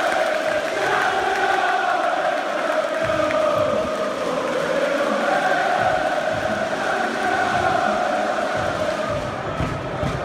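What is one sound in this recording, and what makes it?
A large stadium crowd sings a chant together, echoing outdoors.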